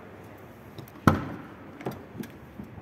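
A truck cab door unlatches and swings open with a loud clunk.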